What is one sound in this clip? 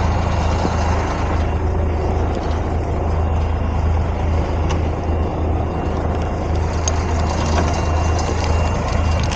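A truck engine runs with a steady low rumble.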